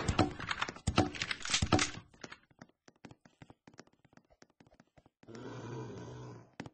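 Boards are hammered onto a window frame with sharp knocks.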